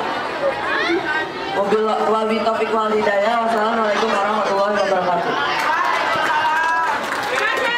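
A teenage boy sings loudly into a microphone through a loudspeaker.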